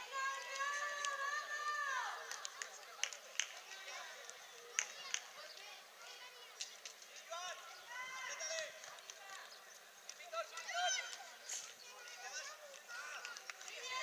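Children shout and call out across an open outdoor pitch.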